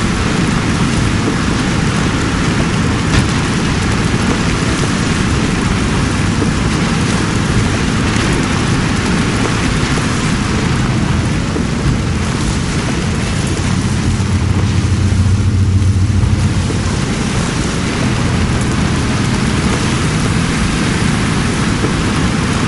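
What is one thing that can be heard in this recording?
A vehicle engine rumbles steadily and swells louder for a moment.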